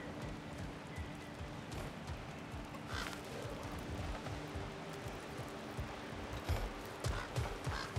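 Metal armour clinks with each step.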